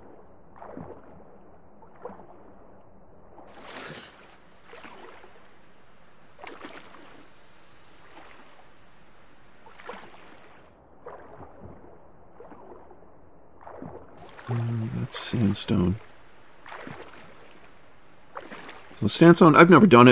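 Water splashes and swirls with swimming strokes.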